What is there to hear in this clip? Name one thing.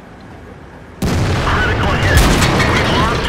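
A shell explodes with a roaring burst of fire.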